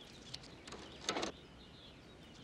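A gloved hand taps on a tape player.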